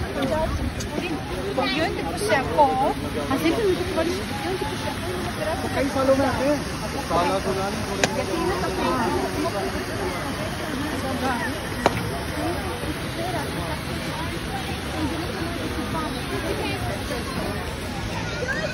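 A fountain splashes and sprays steadily.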